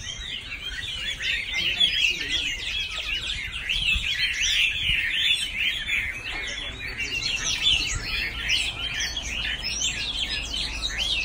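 Many caged birds chirp and twitter busily outdoors.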